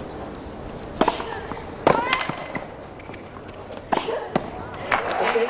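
A tennis ball is struck hard with a racket, with sharp pops.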